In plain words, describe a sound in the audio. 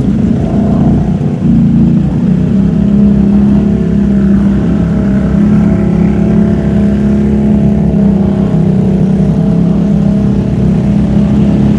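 Other quad bike engines rumble nearby.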